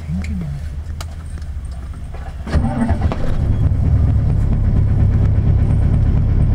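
A vehicle's engine rumbles low and grows louder.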